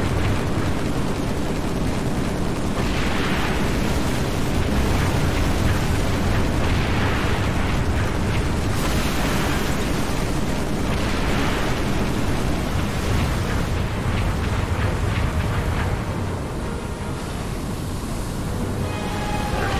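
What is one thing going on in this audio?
An aircraft engine roars and whines steadily as it hovers.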